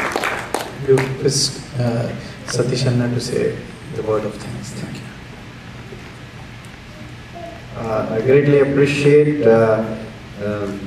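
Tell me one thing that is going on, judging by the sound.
A man speaks through a microphone.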